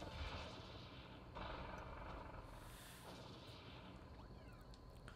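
Video game battle sound effects whoosh and crash.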